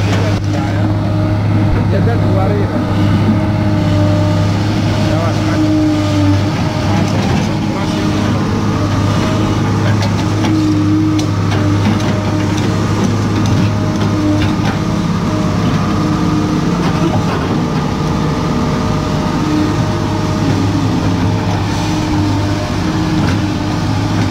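A diesel excavator engine rumbles steadily close by.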